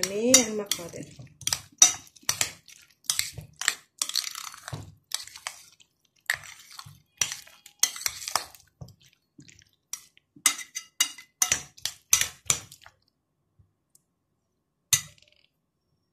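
A spoon scrapes and clicks against a glass bowl.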